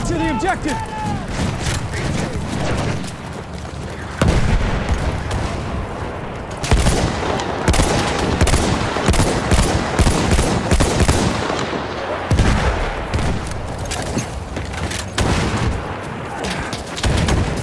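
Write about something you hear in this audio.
Rifle shots crack sharply, one after another.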